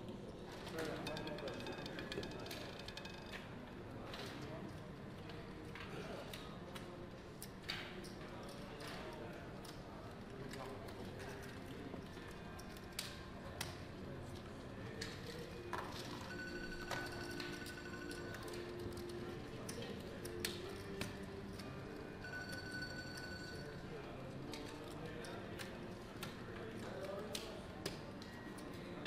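A roulette ball rattles around a spinning wheel.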